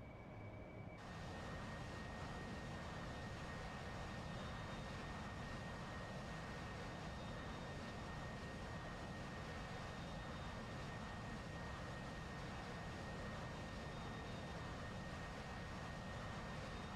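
A jet engine roars from outside the aircraft.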